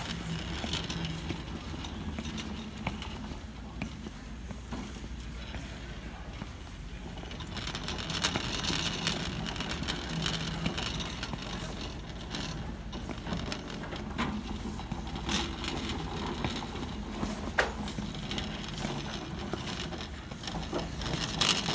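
Leather work boots step on a hard stone floor.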